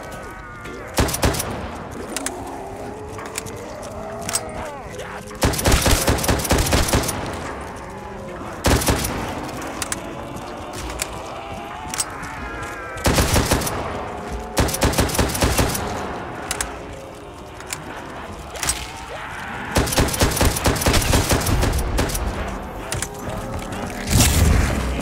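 Guns fire in loud rapid bursts and single shots.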